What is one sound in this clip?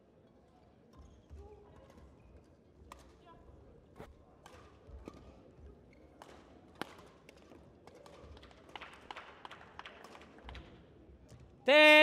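Players' footsteps patter on the court.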